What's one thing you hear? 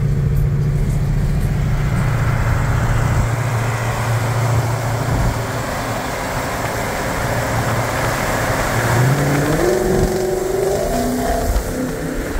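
A pickup truck rolls alongside at speed, its tyres roaring steadily on the road.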